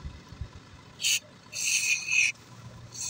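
An aerosol can sprays in short hissing bursts.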